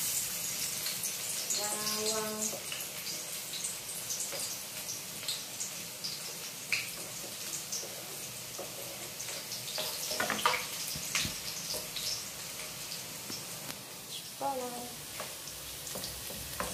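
Oil sizzles and crackles in a frying pan.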